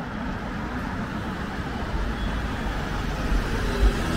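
A vehicle engine drones as it passes nearby.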